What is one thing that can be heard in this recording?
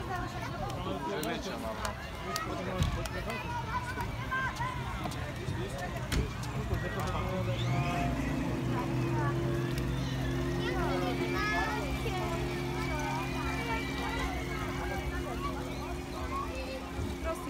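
Children and adults chatter and call out nearby outdoors.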